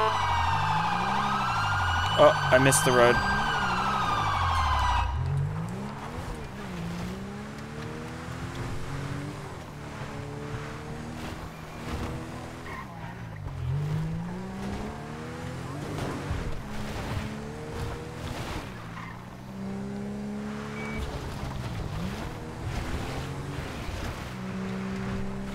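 A car engine revs up and down as the car drives over rough ground.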